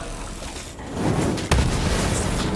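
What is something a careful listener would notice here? An explosion bursts with a roar.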